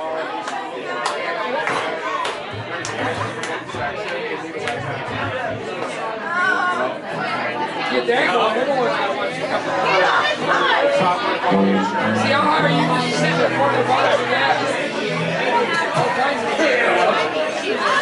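An upright bass plucks a deep walking line.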